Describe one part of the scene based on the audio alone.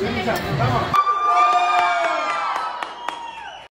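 Young women chant and cheer in a group.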